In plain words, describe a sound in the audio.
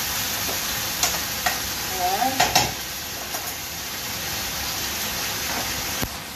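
A utensil clinks and scrapes against a pan.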